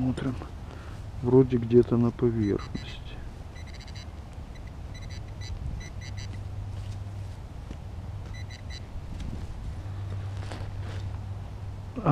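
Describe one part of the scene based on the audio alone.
A hand tool scrapes and digs into dry soil.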